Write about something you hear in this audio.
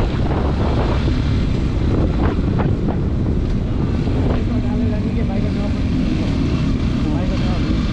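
A motorcycle engine rumbles steadily at close range.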